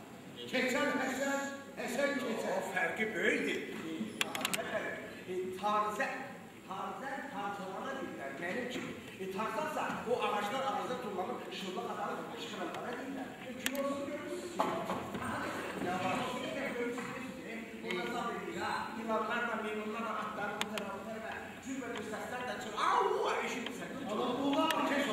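A man speaks loudly and expressively in a large hall.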